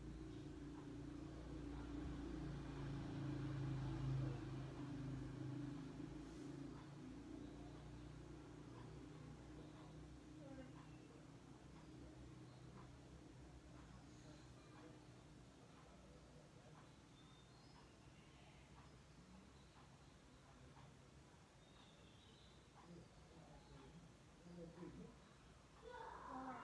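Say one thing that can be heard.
A television plays faintly across the room.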